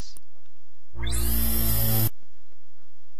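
A computer alert chime sounds once.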